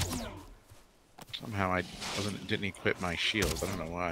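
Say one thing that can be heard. A weapon strikes a creature with a wet splat.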